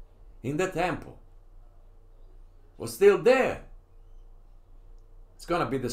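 An elderly man reads out calmly, close to a microphone, in short phrases.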